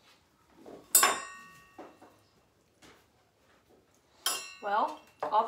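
A spoon clinks sharply against a glass jar.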